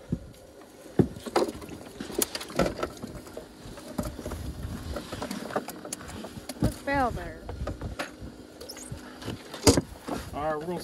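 Knocks and clatters sound on a metal boat deck.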